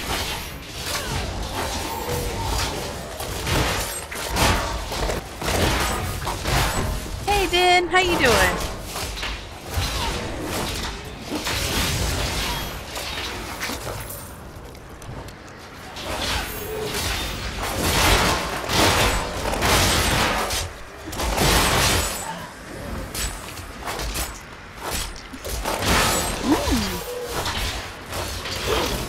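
Game spells crackle and blast over and over.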